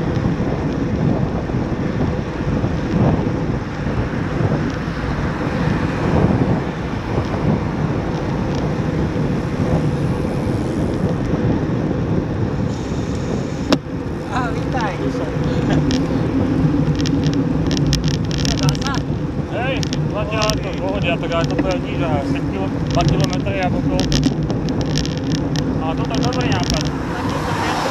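Wind rushes loudly past a moving bicycle outdoors.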